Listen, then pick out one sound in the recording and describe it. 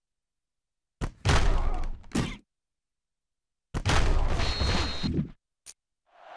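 Football players' pads thud together in a tackle.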